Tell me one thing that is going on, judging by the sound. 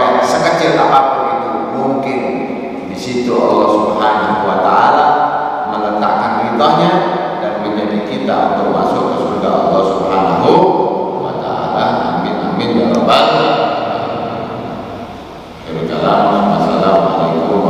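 A man speaks with animation into a microphone, heard through loudspeakers in an echoing hall.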